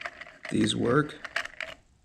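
Plastic gears click as a small knob is turned by hand.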